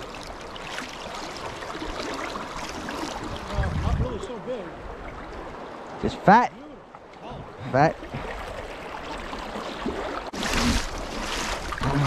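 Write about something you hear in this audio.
A shallow stream flows and gurgles steadily.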